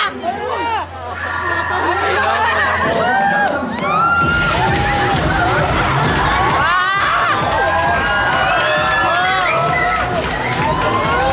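A crowd of young women cheers and shrieks excitedly nearby.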